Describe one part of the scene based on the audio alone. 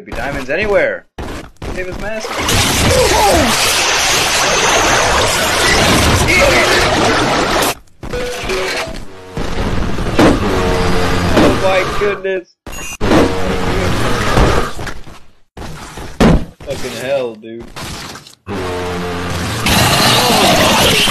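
A teenage boy shouts loudly into a microphone.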